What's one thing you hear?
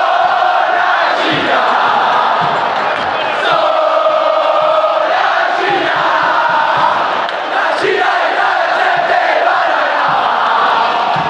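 A large crowd sings and chants loudly in unison, echoing in an open stadium.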